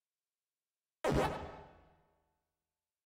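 A short electronic game chime sounds and quickly fades.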